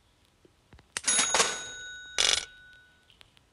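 Coins clink and jingle briefly.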